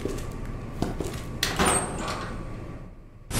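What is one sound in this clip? A metal locker door swings open with a creak.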